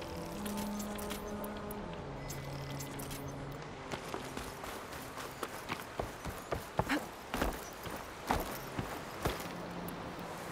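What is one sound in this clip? Footsteps crunch over dry grass and dirt.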